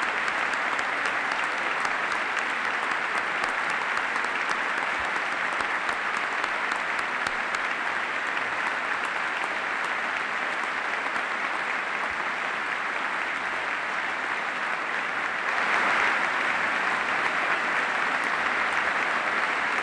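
A large crowd applauds steadily in a big echoing hall, swelling louder near the end.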